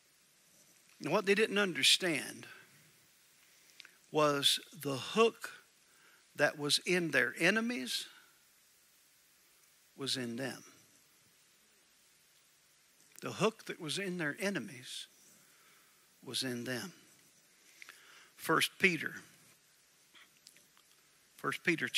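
A man speaks slowly and deliberately through a microphone, with pauses between phrases.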